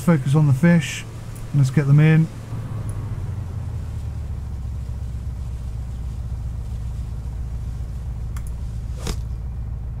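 Waves wash against a boat's hull.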